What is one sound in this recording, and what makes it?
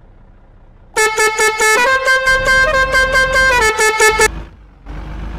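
A truck horn honks in rapid bursts.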